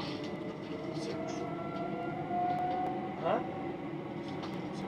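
Train wheels squeal softly on the track.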